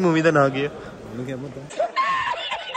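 A young man speaks close by in a playful voice.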